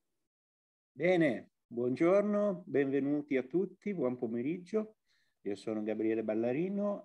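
A middle-aged man speaks with animation through an online call.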